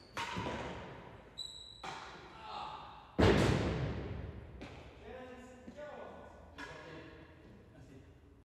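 A ball bangs against the walls of a large echoing hall.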